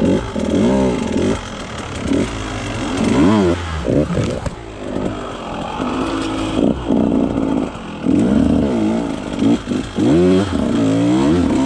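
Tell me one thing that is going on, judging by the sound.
A dirt bike engine revs up and down loudly.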